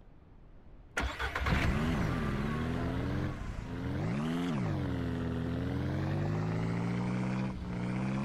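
An engine starts and revs, rising and falling as a vehicle drives off.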